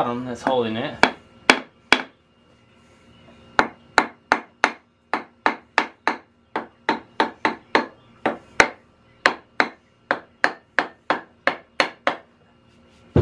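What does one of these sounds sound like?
A hammer strikes metal in quick, ringing blows.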